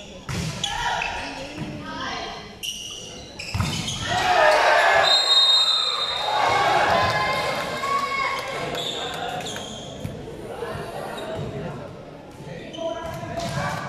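A crowd of young spectators shouts and cheers nearby in an echoing hall.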